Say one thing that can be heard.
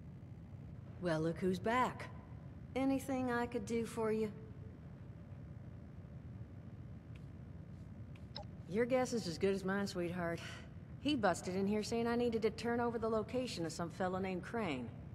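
A woman speaks calmly and warmly, close by.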